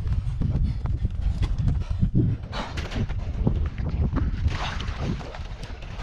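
A kayak scrapes and bumps as a man climbs in.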